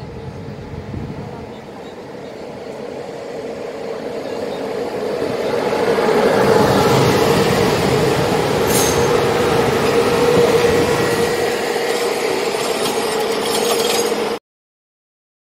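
A train's motors give off a steady high hum.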